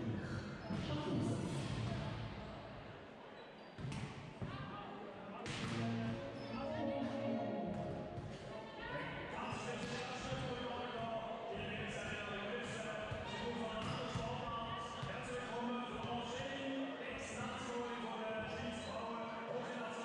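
Balls thump sharply on the floor and hands.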